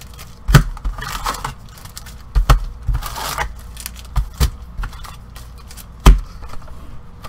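Card packs knock and tap against a table.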